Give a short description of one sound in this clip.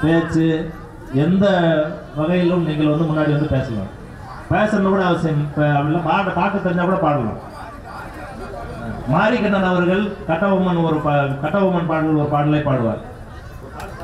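A man sings loudly into a microphone through loudspeakers.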